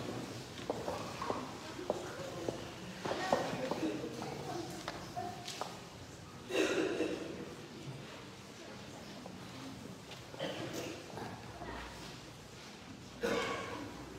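Footsteps tap on a hard floor in a large echoing hall.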